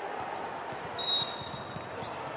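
A referee's whistle blows shrilly once.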